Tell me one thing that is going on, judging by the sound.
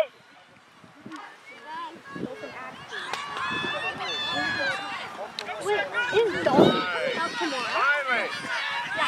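Young women shout and cheer excitedly outdoors.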